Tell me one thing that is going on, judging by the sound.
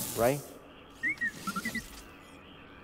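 A small robot chirps and beeps.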